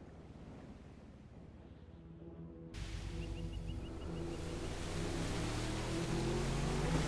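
A speedboat engine roars across the water, growing louder.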